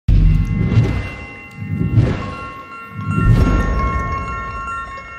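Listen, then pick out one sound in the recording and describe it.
Flames whoosh and roar in deep bursts.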